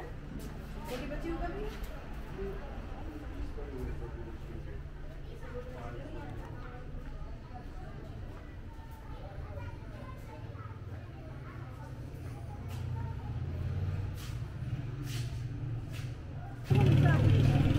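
Voices murmur faintly in the background of an echoing hall.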